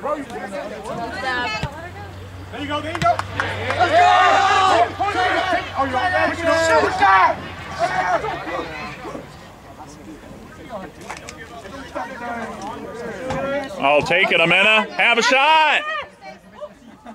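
Spectators shout and cheer nearby, outdoors.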